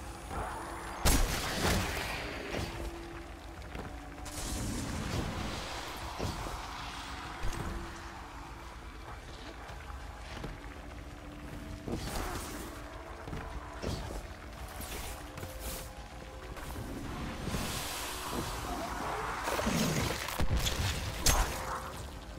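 Sudden bursts of blasts and impacts boom now and then.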